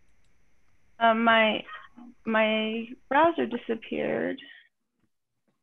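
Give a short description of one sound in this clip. A second woman speaks briefly over an online call.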